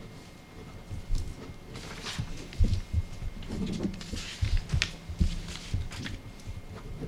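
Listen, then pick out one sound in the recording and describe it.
Papers rustle and thump on a table.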